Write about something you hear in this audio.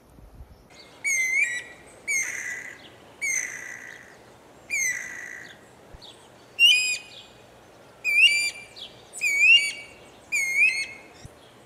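A bird calls close by with repeated, sharp whistling notes.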